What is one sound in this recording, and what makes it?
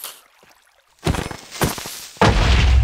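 A sword strikes a creature with short thuds.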